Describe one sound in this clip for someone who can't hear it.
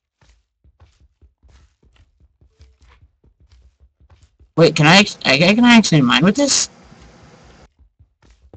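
Blocks crack with quick taps as they are mined in a game.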